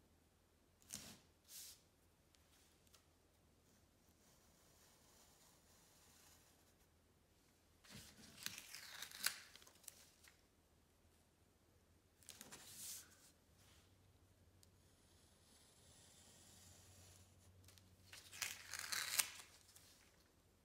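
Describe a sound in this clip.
Masking tape peels and rips in short bursts.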